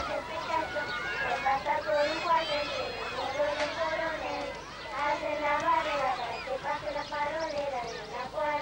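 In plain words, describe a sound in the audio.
Young girls sing together in chorus.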